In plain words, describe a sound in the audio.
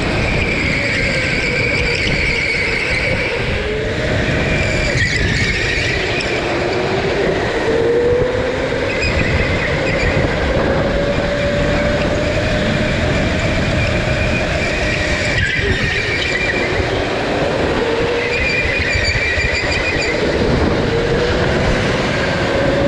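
Other go-kart engines buzz nearby.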